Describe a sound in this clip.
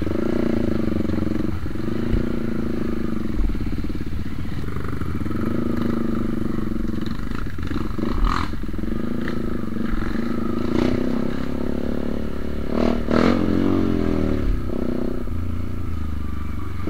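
A motorbike engine hums and revs steadily close by.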